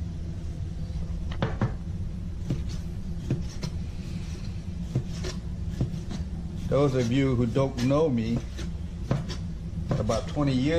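A knife taps on a cutting board as meat is sliced.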